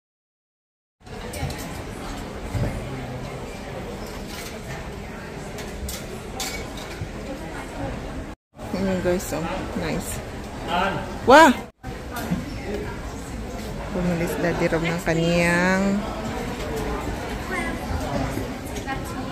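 Shoppers murmur and move about.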